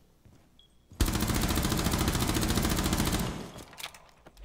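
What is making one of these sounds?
A rifle fires a long, rapid burst of shots.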